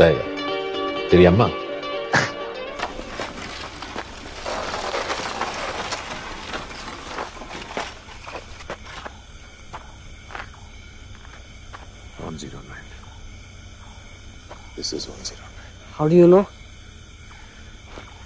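A man speaks quietly up close.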